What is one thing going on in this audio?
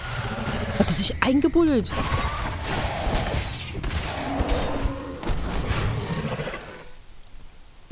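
A large beast growls and roars.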